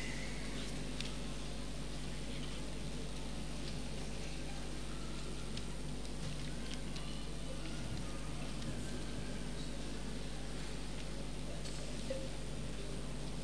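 A crowd murmurs quietly nearby.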